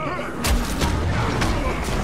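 A fireball bursts with a roaring whoosh.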